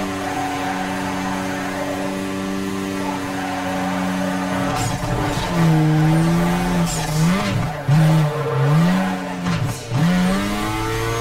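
A car engine hums steadily, then revs up and down sharply.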